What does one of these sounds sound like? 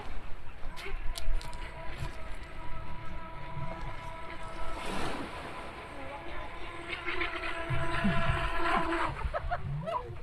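A small boat motor whines as it speeds across the water.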